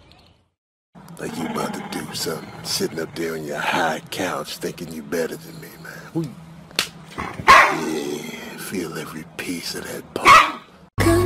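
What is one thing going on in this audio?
A dog snarls and growls playfully.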